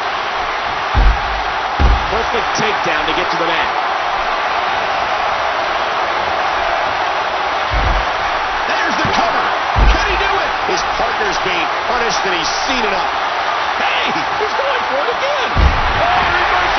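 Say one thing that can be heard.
Bodies slam heavily onto a wrestling mat with deep thuds.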